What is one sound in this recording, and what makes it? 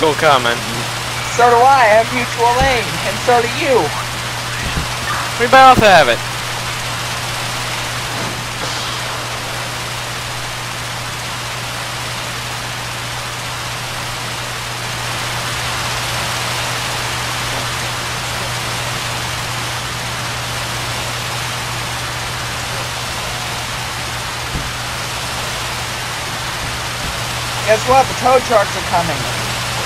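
Water sprays steadily from a hose with a hiss.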